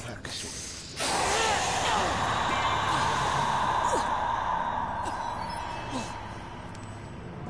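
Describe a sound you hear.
Steam hisses loudly in a strong, steady spray.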